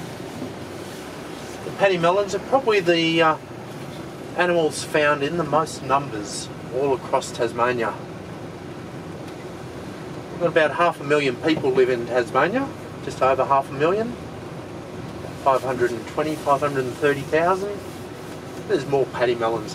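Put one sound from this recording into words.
A vehicle engine hums steadily while driving.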